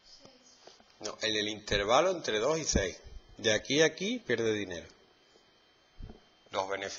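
A man speaks calmly close by, explaining.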